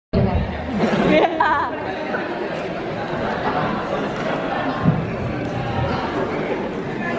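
A crowd murmurs and chatters in the hall.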